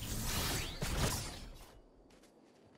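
A loud rushing whoosh sweeps past and fades.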